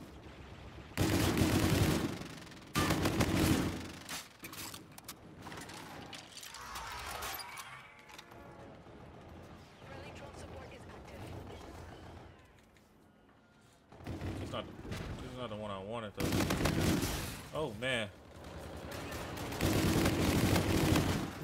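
Gunfire from a video game crackles in rapid bursts.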